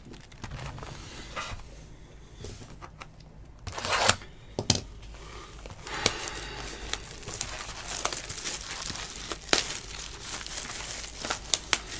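A plastic wrapper crinkles as cards are handled.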